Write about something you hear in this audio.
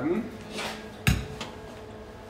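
A metal cup knocks down onto a metal counter.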